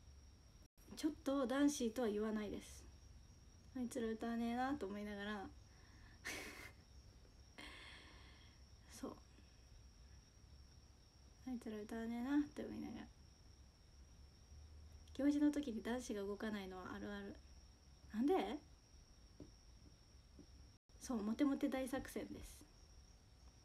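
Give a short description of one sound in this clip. A young woman talks calmly and cheerfully, close to the microphone, with pauses.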